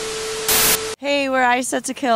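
A young woman speaks brightly and with animation into a microphone, close by.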